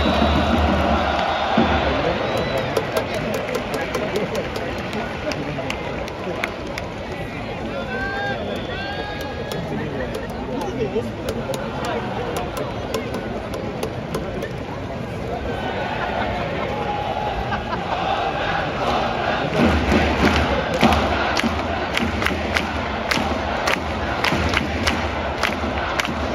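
A large stadium crowd cheers and chants all around, loud and echoing.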